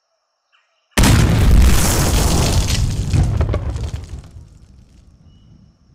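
A loud explosion booms and rumbles, then fades.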